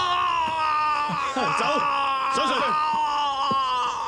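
A man speaks gruffly and commandingly.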